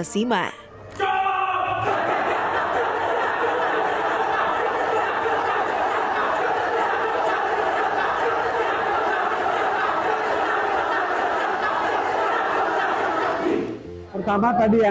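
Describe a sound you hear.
An orchestra plays in a large echoing hall.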